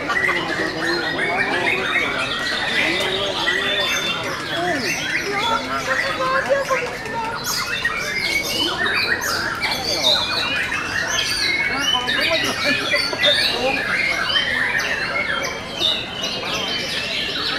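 A songbird chirps and trills in quick bursts close by.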